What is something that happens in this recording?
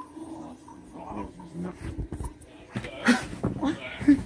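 Bare feet step softly on a carpet.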